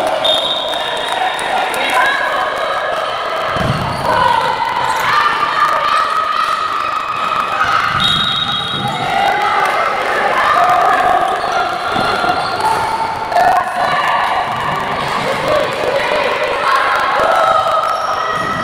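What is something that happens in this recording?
A ball bounces on a hard indoor floor.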